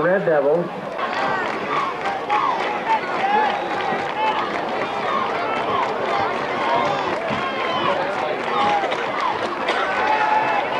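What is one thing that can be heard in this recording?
A crowd chatters and calls out in the distance outdoors.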